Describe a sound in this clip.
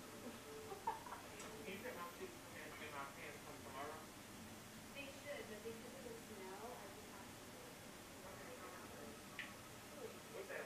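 A young woman chats casually, close to the microphone.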